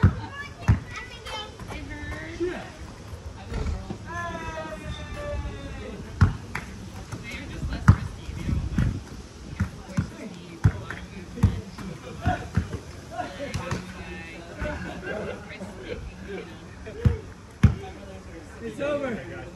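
A basketball bounces on an outdoor plastic court.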